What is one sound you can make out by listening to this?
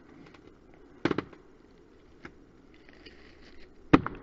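Twigs and forest litter crackle and thump close by.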